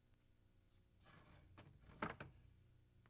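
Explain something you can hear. A wooden gate rattles as it is pushed open.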